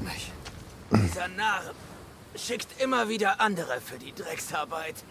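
A man speaks in a low, rough voice.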